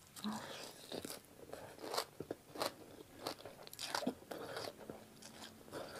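A young woman slurps noodles.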